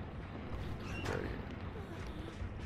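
A large beast snarls loudly.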